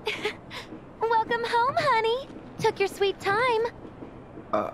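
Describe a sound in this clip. A young woman speaks cheerfully and playfully.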